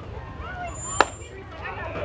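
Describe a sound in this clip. A bat cracks sharply against a ball outdoors.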